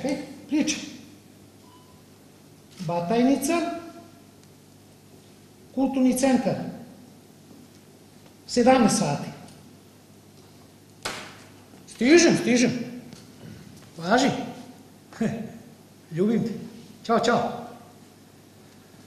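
A man speaks loudly in short bursts in an echoing hall.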